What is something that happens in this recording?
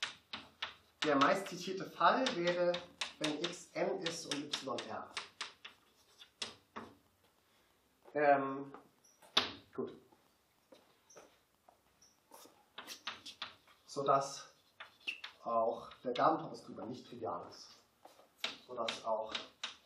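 A young man speaks calmly, as if lecturing.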